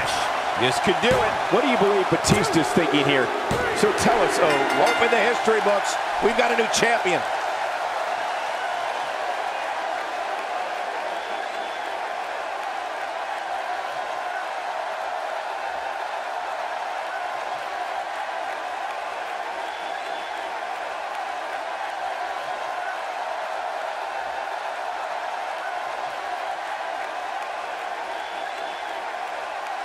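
A large crowd cheers and roars steadily in a big echoing arena.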